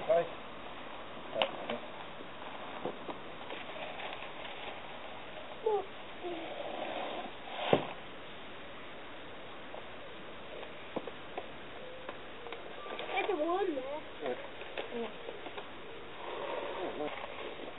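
A young girl speaks and calls out nearby.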